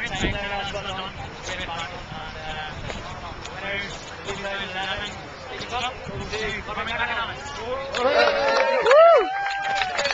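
A man speaks through a microphone and loudspeaker outdoors.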